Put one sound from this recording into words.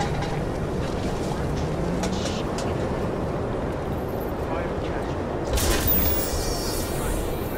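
Footsteps tread steadily on wet pavement.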